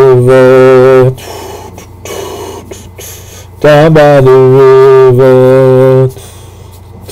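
A middle-aged man sings long, loud held notes close to the microphone.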